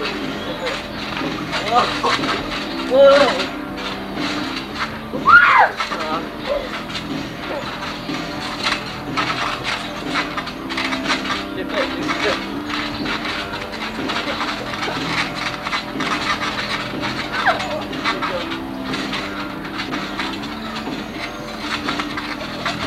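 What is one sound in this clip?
A trampoline thumps and creaks under bouncing feet.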